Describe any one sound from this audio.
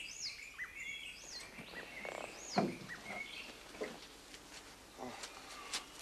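A man climbs out of a jeep with a thump.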